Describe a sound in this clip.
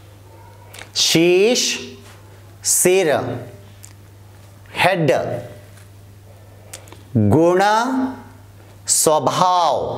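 A man reads out words slowly and clearly, close to a microphone, with pauses between them.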